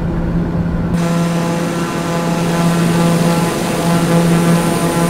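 A propeller plane's engine hums and whines steadily, heard from outside.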